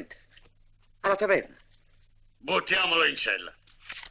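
An older man speaks gruffly up close.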